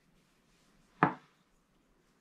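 A wooden handle knocks once on a table.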